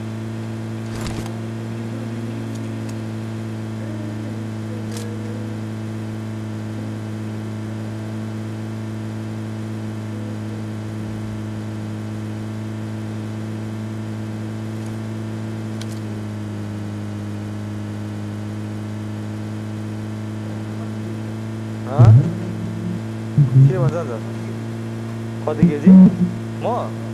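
A vehicle engine drones steadily throughout.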